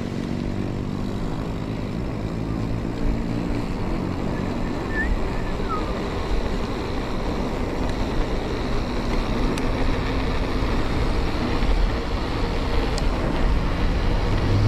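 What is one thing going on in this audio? Wind rushes past steadily, outdoors.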